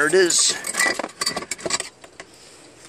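Metal parts clank and rattle in a plastic tub.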